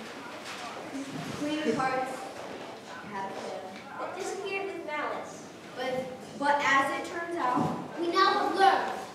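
Children speak loudly in a large hall.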